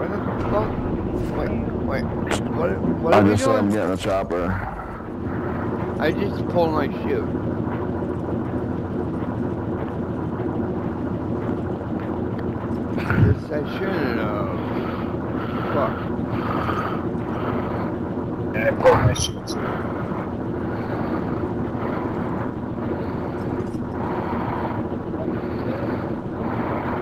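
Wind rushes loudly and steadily past during a freefall.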